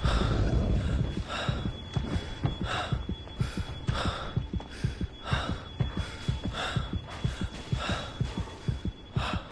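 Footsteps crunch steadily over rough ground.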